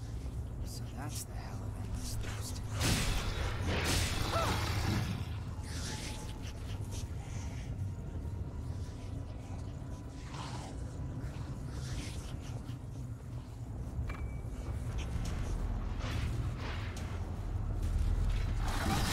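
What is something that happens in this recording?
Heavy weapon blows strike and clang in a fight.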